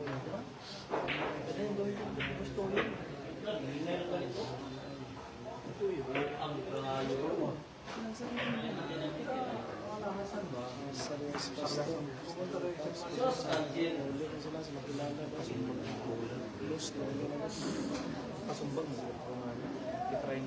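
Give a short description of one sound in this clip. A cue tip strikes a ball with a sharp tap.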